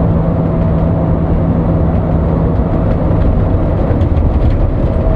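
A bus engine drones steadily from inside the cab.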